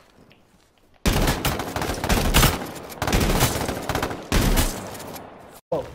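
A shotgun fires several loud blasts.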